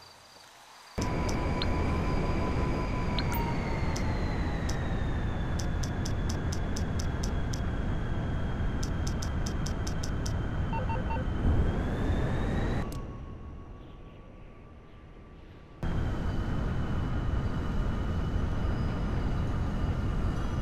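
A hovering car's engine drones with a high whine.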